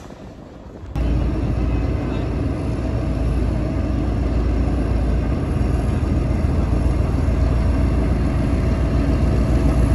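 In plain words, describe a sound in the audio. A diesel locomotive engine drones steadily as it hauls a train.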